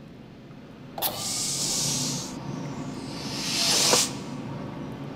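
A heavy sliding door opens with a loud pneumatic hiss.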